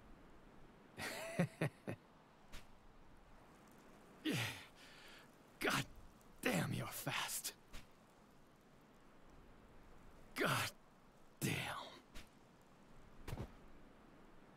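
A young man talks and exclaims in short bursts close to a microphone.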